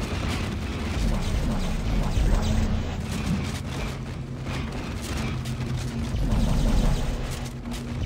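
Heavy boots clank on a metal walkway.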